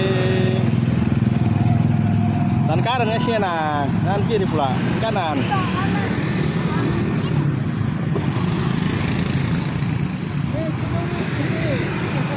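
A motorbike engine idles and hums steadily nearby.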